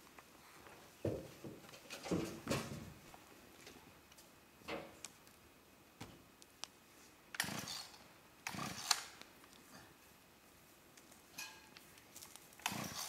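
A man yanks a chainsaw's starter cord again and again.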